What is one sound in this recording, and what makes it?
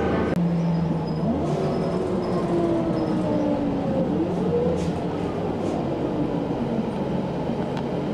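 A bus engine hums and whines, rising and falling as the bus changes speed.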